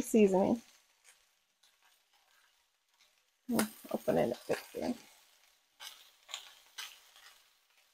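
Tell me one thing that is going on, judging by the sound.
A spice shaker rattles as seasoning is shaken over vegetables in a pan.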